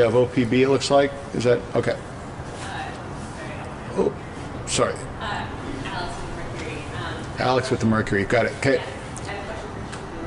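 A middle-aged man speaks calmly into a microphone in a large echoing room.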